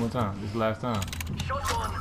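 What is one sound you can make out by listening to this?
Buttons on a machine's keypad beep as they are pressed.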